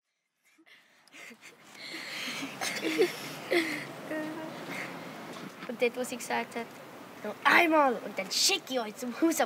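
A young boy talks cheerfully close by.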